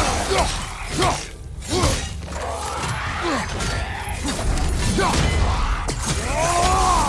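Blades slash and strike flesh in quick blows.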